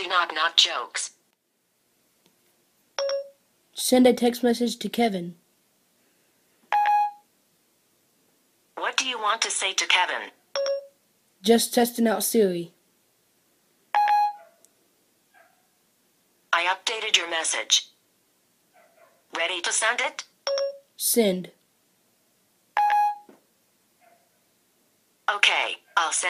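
A synthetic female voice speaks calmly through a small phone loudspeaker.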